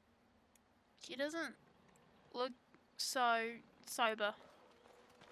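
A young woman speaks briefly into a close headset microphone.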